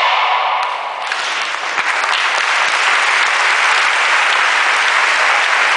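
An audience claps loudly.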